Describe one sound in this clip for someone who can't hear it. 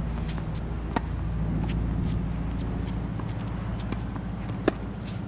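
A tennis ball is struck with a racket with a sharp pop.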